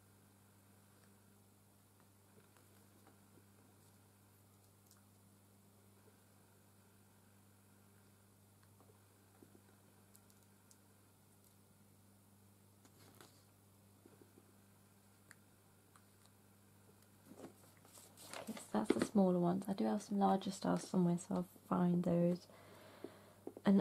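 Fingers lightly tap and rustle on a sheet of paper.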